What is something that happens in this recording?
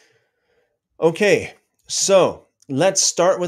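A man speaks calmly and clearly into a close microphone.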